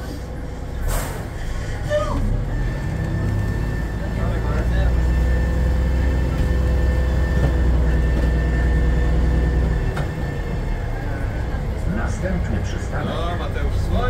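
A bus engine hums steadily from inside as the bus drives off.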